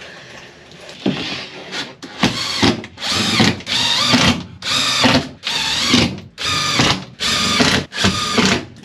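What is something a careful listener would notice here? A power drill whirs in repeated short bursts.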